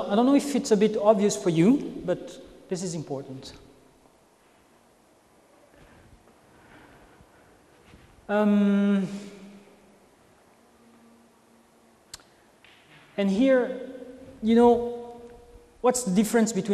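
A man speaks calmly with pauses, in a slightly echoing room.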